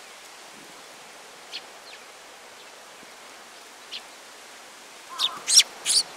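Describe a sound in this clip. A small bird pecks at seeds with light ticks.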